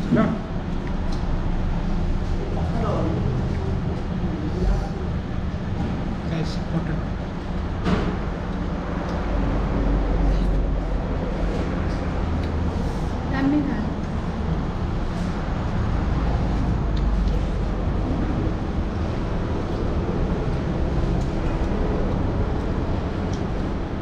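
Hands squish and mix rice on metal plates.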